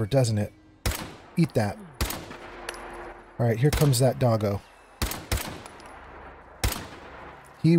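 A rifle fires sharp shots.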